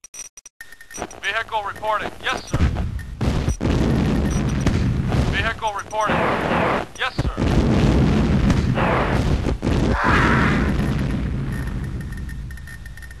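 Gunfire rattles and explosions boom in a battle.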